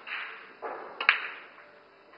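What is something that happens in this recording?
A pool cue strikes a ball with a sharp click.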